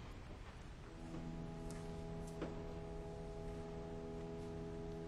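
A choir sings a sustained chord in a large echoing hall.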